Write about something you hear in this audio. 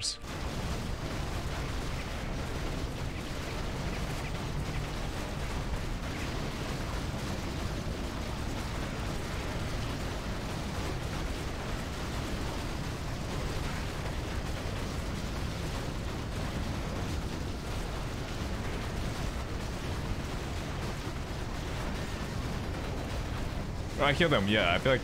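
Weapons clash and spells burst in a dense, steady battle din.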